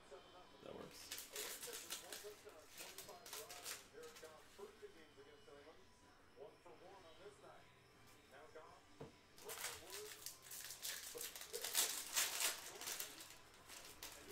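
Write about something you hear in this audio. Trading card packs rustle and crinkle as they are handled.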